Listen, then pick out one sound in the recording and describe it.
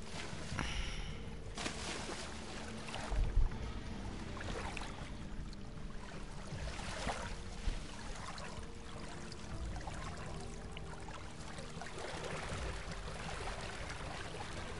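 Water splashes as large birds wade through it.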